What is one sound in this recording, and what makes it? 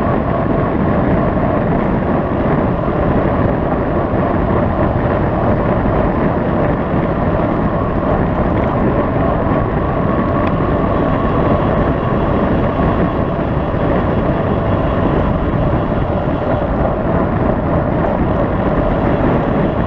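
A vehicle engine hums steadily while driving.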